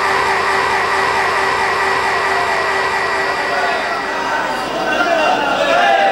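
A group of men chant together loudly.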